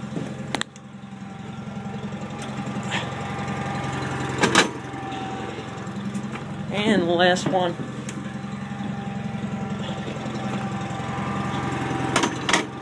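A small tractor engine idles steadily nearby.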